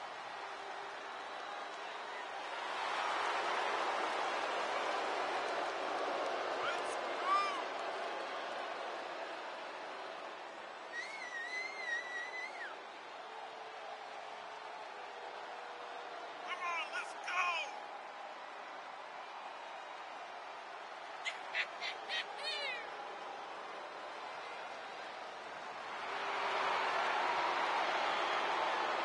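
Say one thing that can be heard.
A large arena crowd cheers and roars throughout.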